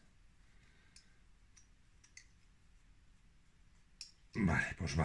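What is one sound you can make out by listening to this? Metal parts click softly as a hand turns them.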